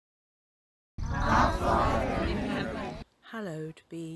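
A group of people sing together, heard through an online call.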